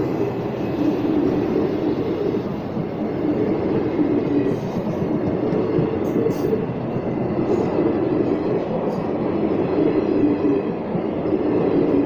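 Train wheels clatter rhythmically over the rail joints.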